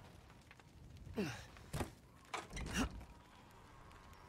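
A wooden door creaks open slowly.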